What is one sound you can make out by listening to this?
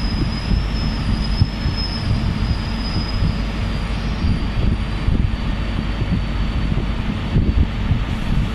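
A diesel train engine roars loudly as a train pulls slowly past close by.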